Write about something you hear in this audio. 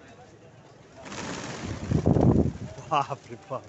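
Pigeons' wings flap loudly in a sudden rush as a flock takes off.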